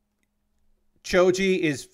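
A man speaks animatedly close to a microphone.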